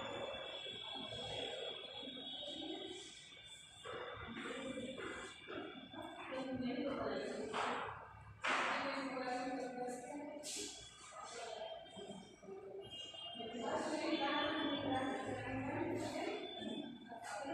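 A woman speaks calmly nearby, explaining as she goes.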